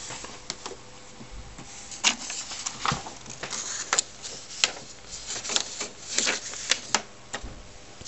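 A hand handles objects on a desk with clicks and knocks.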